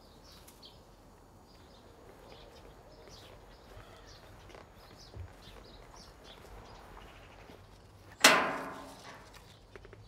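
Footsteps swish softly through grass.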